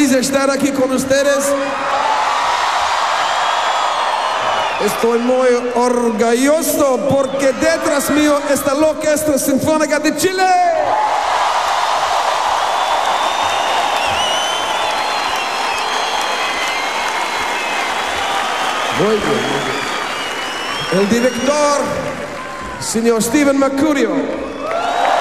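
A man sings into a microphone with strong feeling.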